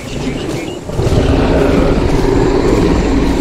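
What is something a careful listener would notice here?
A large creature growls low and rumbling.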